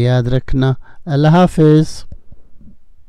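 An elderly man speaks calmly into a microphone, close by.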